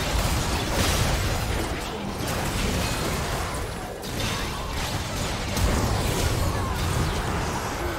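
Game spells crackle, whoosh and burst in a fast battle.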